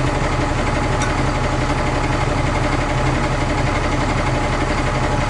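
A truck's diesel engine runs loudly and steadily close by.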